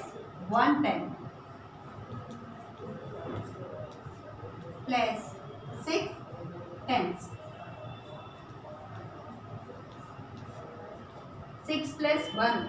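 A woman speaks aloud in short, clear phrases nearby.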